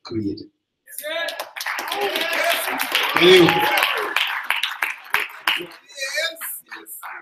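An audience cheers and shouts.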